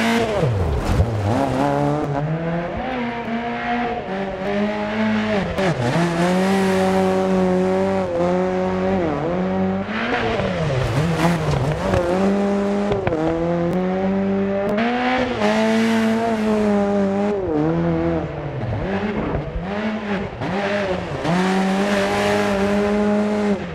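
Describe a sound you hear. A rally car engine revs hard and shifts gears, rising and falling in pitch.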